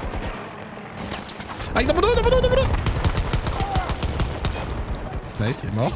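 Pistol shots crack in quick succession.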